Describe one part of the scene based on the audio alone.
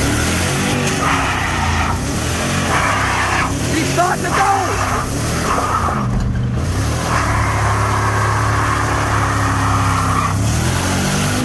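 Tyres screech as they spin on the road.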